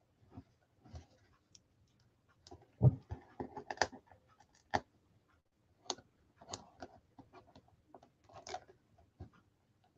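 A pen scratches and taps on paper.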